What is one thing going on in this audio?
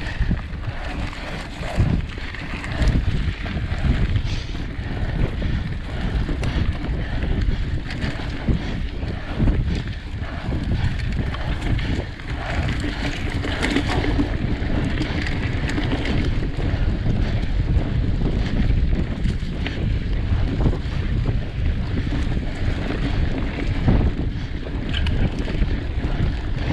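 Bicycle tyres crunch and rumble over a bumpy dirt trail.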